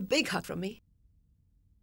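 A woman speaks softly, close by.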